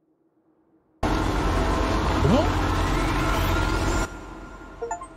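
A loud rushing whoosh swells and sweeps upward, then cuts off.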